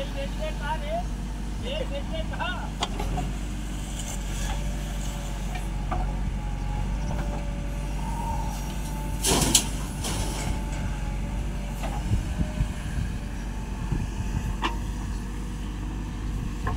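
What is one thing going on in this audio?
A digger's diesel engine rumbles steadily close by.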